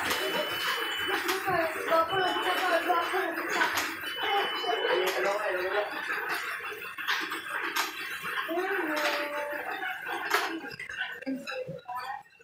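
An exercise machine creaks and squeaks rhythmically.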